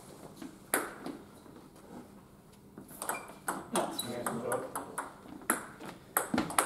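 A table tennis ball clicks sharply back and forth off paddles and the table in an echoing hall.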